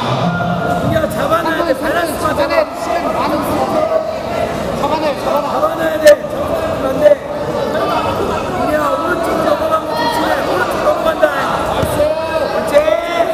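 A crowd of men and women shout and call out in a large echoing hall.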